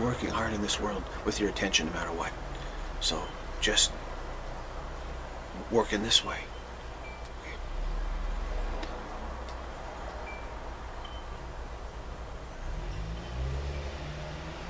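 A middle-aged man speaks calmly and close to the microphone, with pauses.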